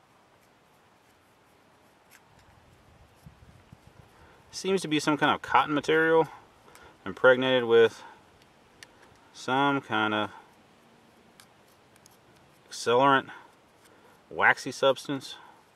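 A knife blade scrapes against a small metal striker.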